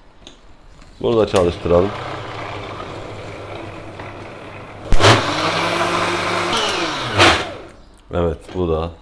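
A blender whirs loudly, blending fruit.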